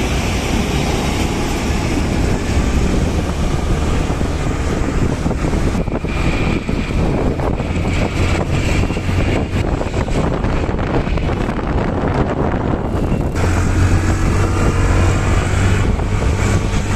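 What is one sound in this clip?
Traffic hums steadily on a busy street outdoors.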